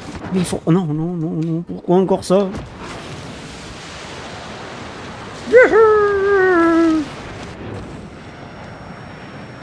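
Wind rushes loudly past a fast-flying wingsuit.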